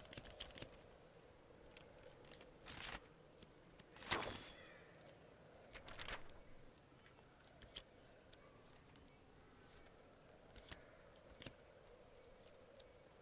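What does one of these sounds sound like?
Short game menu clicks and chimes sound now and then.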